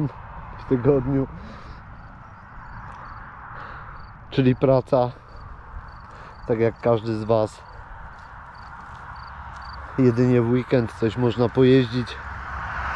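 A man speaks in short bursts close to a helmet microphone.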